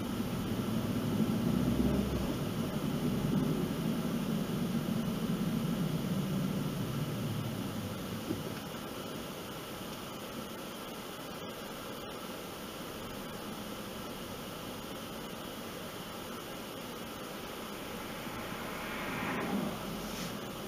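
Tyres hum steadily on the road from inside a moving car, then quieten as the car slows.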